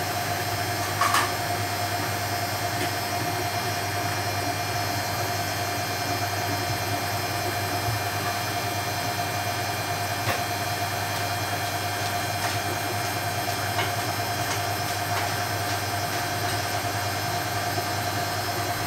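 Clothes or small items knock now and then against a turning washing machine drum.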